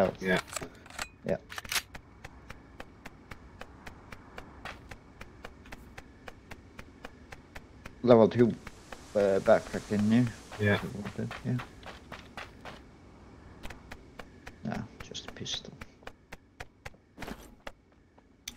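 Footsteps tap quickly and steadily on hard ground.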